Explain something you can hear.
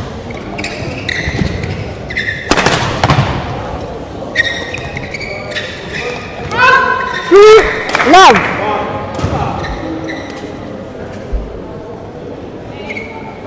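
A shuttlecock is struck sharply by rackets in a large echoing hall.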